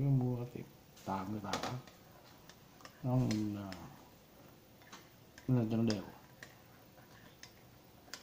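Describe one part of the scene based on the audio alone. A spoon stirs liquid in a bowl.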